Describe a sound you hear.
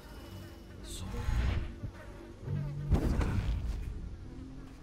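A sharp magical whoosh bursts out and fades.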